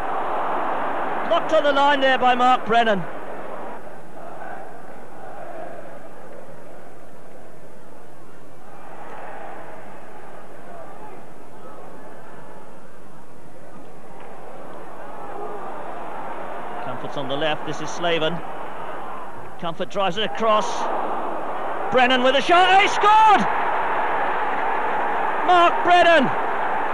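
A large crowd murmurs and chants in a big open stadium.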